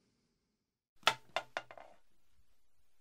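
Cloth rustles and thumps close by.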